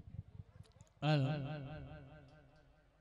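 A keyboard plays a sustained wavering chord through loudspeakers.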